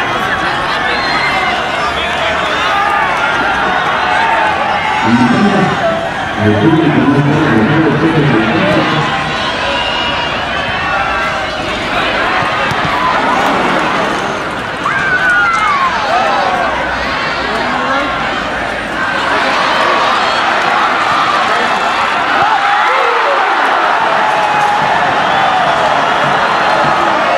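A crowd of spectators chatters and shouts steadily outdoors.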